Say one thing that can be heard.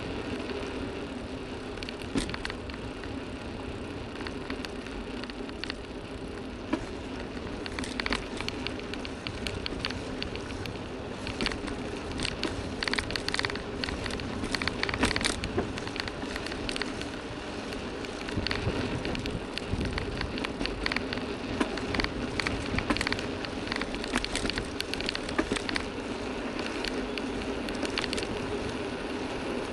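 Wind buffets the microphone in low gusts.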